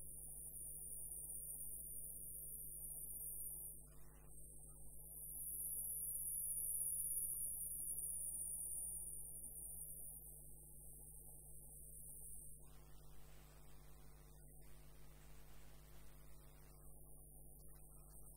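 A gouge cuts into spinning wood, hollowing it out.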